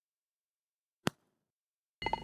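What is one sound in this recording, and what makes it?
A golf ball drops into the cup with a short click.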